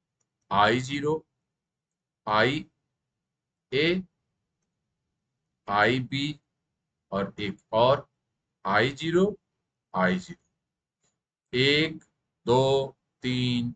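A middle-aged man speaks calmly and slowly into a microphone, in short phrases with pauses.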